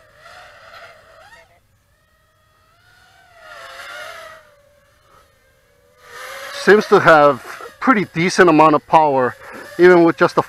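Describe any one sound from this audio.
A model plane's motor whines overhead, rising and falling in pitch and growing loud as it flies low and close.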